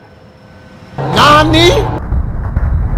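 A car slams into metal with a loud crashing bang.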